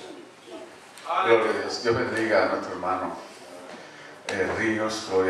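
A man speaks into a microphone, heard through loudspeakers in an echoing room.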